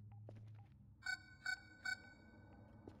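A computer terminal gives a few short electronic beeps.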